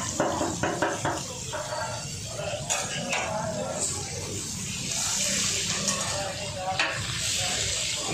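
A metal spatula scrapes against the griddle.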